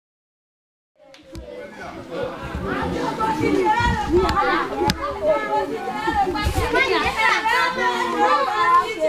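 A crowd of women sings together outdoors.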